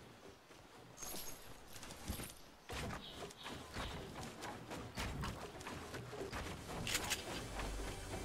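Wooden building pieces knock and clatter into place in quick succession.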